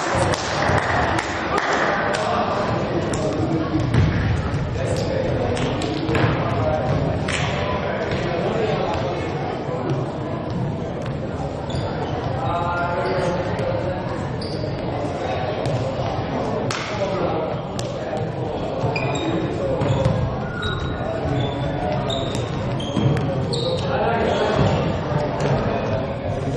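Young men shout calls across an echoing hall.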